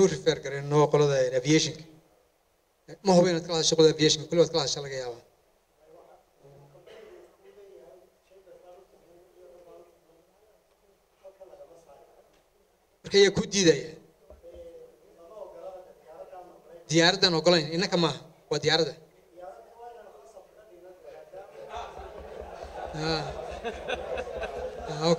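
An elderly man speaks calmly into a microphone, heard through a loudspeaker in an echoing room.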